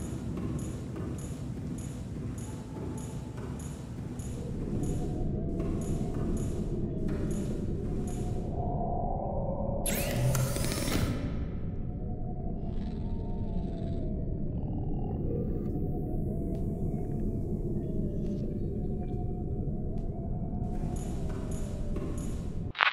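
Footsteps clank rhythmically on a metal floor.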